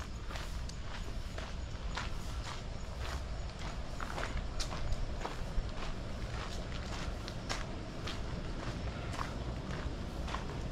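Footsteps tread steadily along a path.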